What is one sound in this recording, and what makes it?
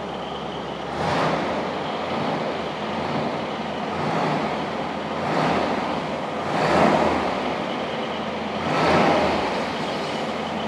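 A car engine revs in short bursts.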